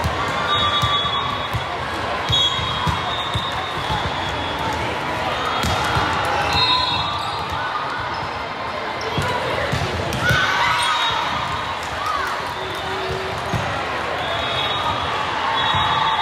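Sports shoes squeak on a hard floor.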